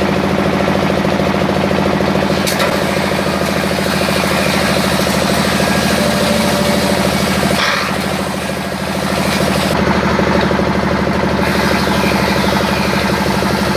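A machine motor hums and rattles steadily.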